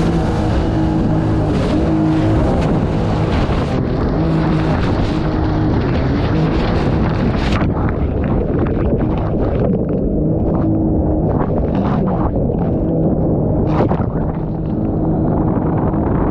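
River water rushes and splashes against a boat's hull.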